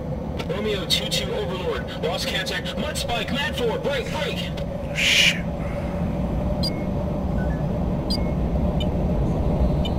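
A jet engine roars steadily, heard from inside the cockpit.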